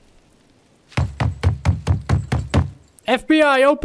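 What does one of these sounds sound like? Knuckles knock rapidly on a door.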